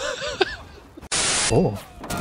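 Loud static hisses.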